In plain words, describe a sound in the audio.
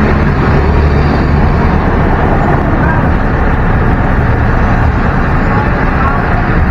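Motorcycle engines hum nearby in traffic.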